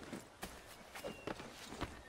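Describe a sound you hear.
Boots scrape and thud on rock while climbing.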